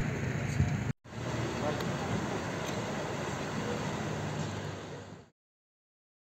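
An ambulance engine idles nearby.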